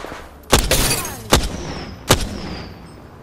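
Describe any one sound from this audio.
A sniper rifle fires three heavy shots in a video game.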